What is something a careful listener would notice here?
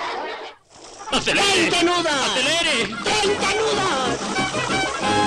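Water splashes as a man swims fast.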